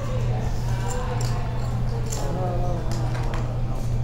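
Poker chips click as a player puts them down.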